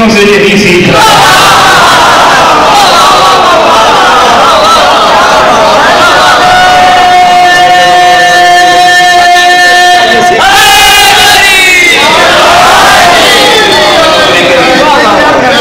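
A crowd of men shouts and cheers.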